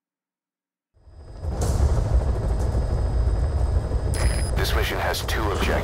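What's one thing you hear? A helicopter engine rumbles steadily from inside the cabin.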